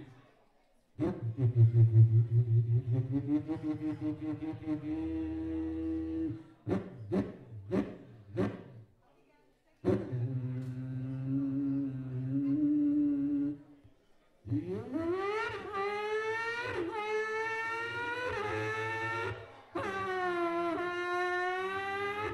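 A man sings into a microphone, heard through loudspeakers.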